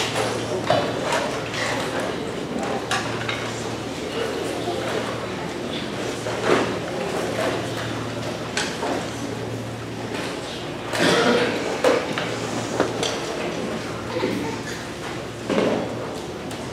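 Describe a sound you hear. Chairs and music stands knock and clatter on a stage.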